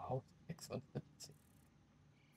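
Short clicks tap in quick succession.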